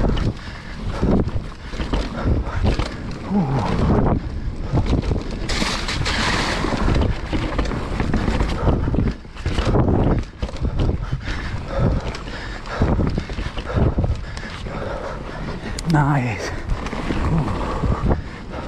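A bicycle frame rattles and clunks over bumps.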